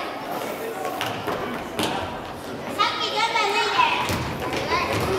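A ball thumps on a hard floor.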